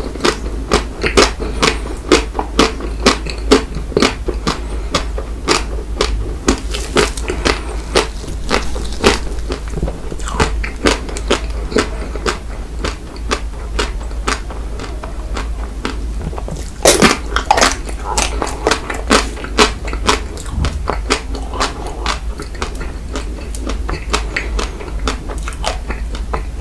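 A young man chews food with loud, wet smacking sounds close to a microphone.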